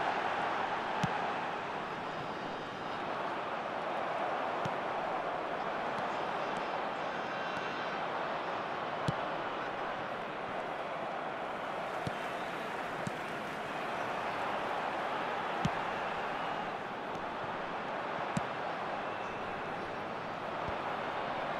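A ball is kicked with sharp thuds now and then.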